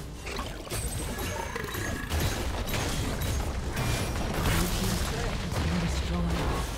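Game spell effects whoosh and crash during a fight.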